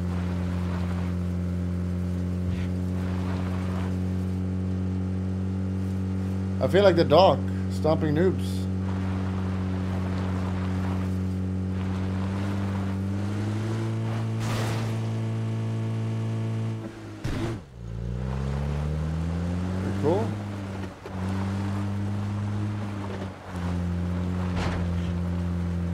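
A vehicle engine drones steadily, its pitch dropping and rising as it drives over rough ground.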